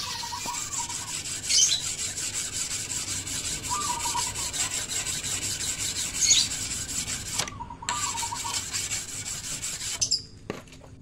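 A whetstone scrapes rhythmically along a metal blade.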